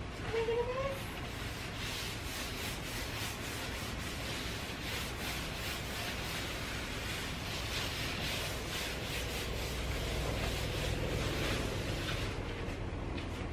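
A cloth rubs briskly over a wooden tabletop.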